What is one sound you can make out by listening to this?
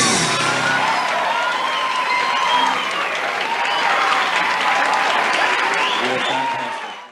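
A large crowd cheers loudly in a big hall.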